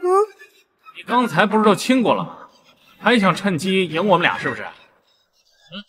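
A second young man speaks with animation.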